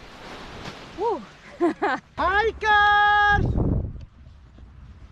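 A young woman laughs and exclaims close by.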